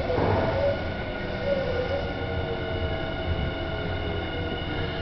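A train's motor whines at a steady pitch.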